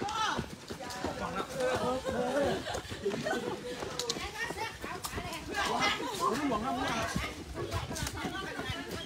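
Running shoes patter on pavement.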